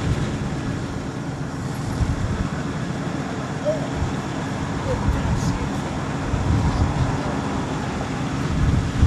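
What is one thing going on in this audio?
A pickup truck engine idles with a low, uneven rumble.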